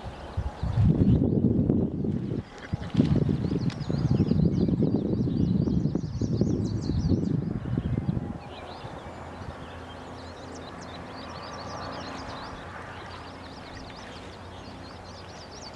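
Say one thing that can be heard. A river flows and ripples gently.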